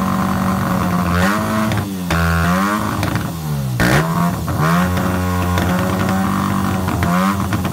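A motorcycle engine runs loudly close by, revving up and down repeatedly.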